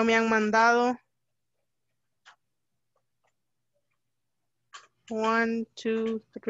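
A young woman speaks through an online call in short, drawn-out phrases.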